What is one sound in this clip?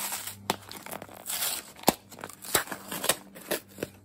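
Tape peels off a cardboard box.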